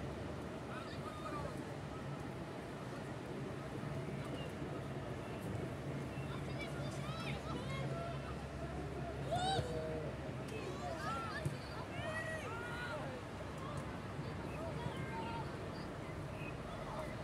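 Players shout and call out across an open field.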